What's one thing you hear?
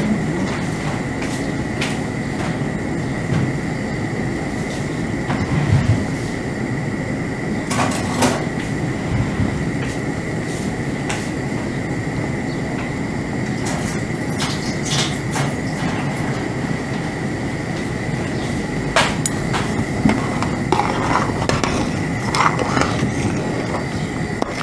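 Soup bubbles and simmers steadily in a pot.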